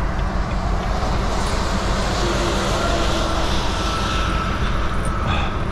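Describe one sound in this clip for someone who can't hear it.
A passing truck roars by and fades.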